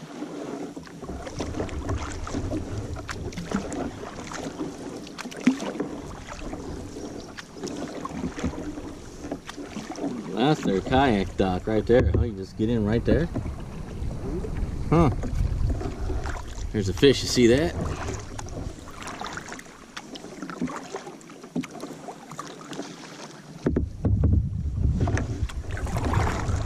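Wind blows across open water and buffets the microphone.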